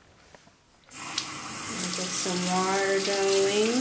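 Tap water runs and splashes onto a hand.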